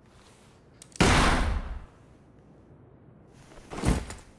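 A pistol fires loudly with a booming echo.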